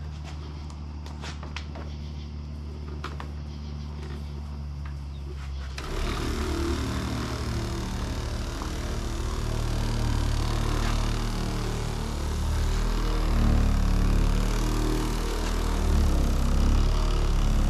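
An electric polisher whirs steadily, then runs louder and harder.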